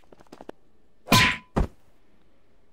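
A metal pole strikes a man with a sharp whack.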